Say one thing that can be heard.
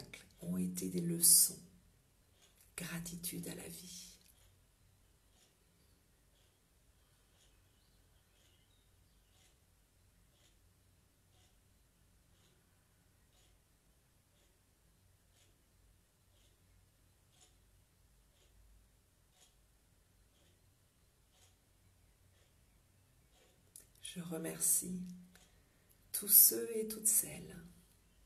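A woman speaks calmly and softly close to a microphone.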